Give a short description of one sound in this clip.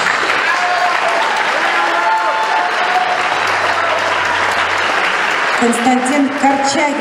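An electric guitar plays a melody.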